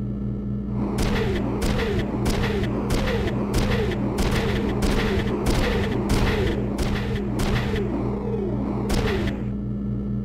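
Heavy metal footsteps of a large walking machine clank repeatedly.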